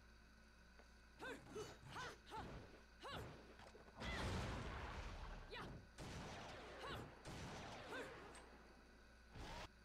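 A sword swishes and clashes in quick strikes.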